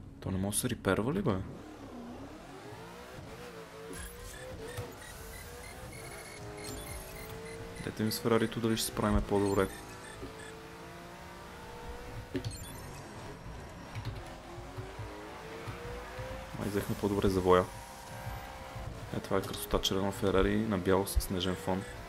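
A race car engine roars and revs up and down at high speed.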